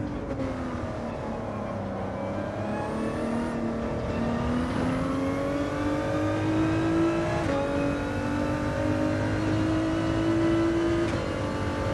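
A racing car engine roars, its pitch rising as it accelerates and dropping briefly at each gear change.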